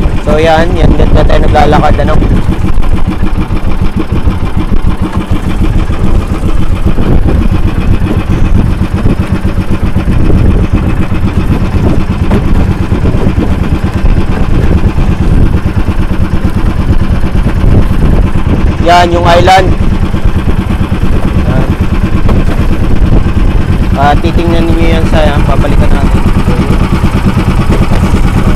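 Choppy water splashes against the hull of a moving boat.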